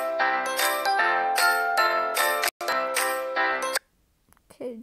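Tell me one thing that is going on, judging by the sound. Bright, cheerful game music plays with chiming notes.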